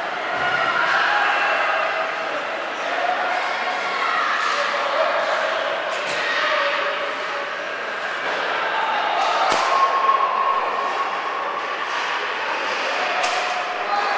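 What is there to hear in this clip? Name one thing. Skates scrape on ice in a large echoing rink.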